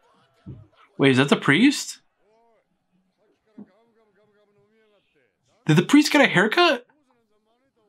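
A young man talks calmly and close into a microphone, in short bursts.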